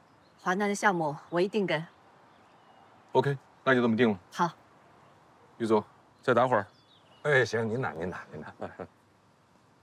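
A woman speaks calmly up close.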